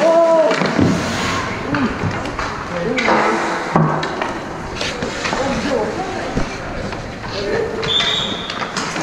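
Men shout and call out to each other in a large echoing rink.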